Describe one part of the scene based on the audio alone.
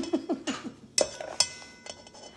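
A metal spoon clinks against a metal bowl.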